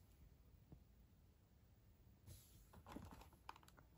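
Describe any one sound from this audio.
Hands handle a cardboard box, which rustles and crinkles.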